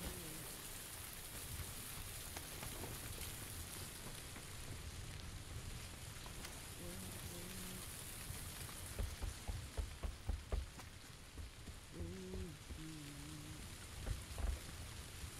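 Footsteps thud on the ground and wooden floors.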